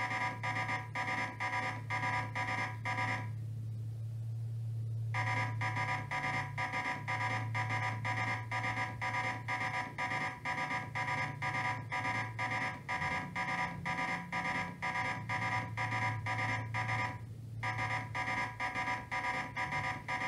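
Electronic game music plays in rapid, pulsing beeps.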